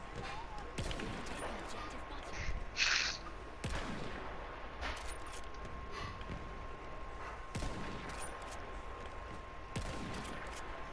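A bolt-action sniper rifle fires sharp shots.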